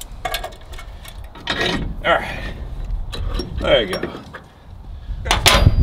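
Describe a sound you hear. Metal pliers clink against a steel vise.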